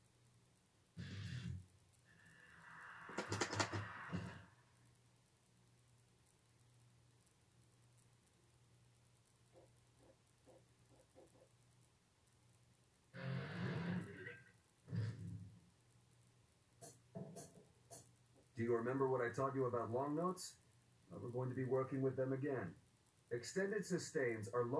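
A video game plays short bursts of sound through a television speaker.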